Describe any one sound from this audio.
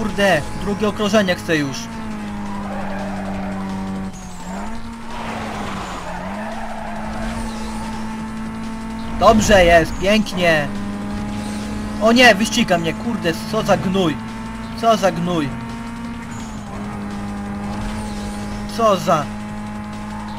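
A car engine revs up and down through gear changes.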